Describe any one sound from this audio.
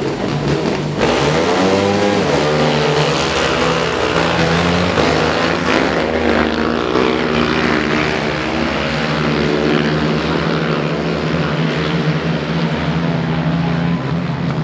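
Several quad bike engines roar and rev loudly as they race.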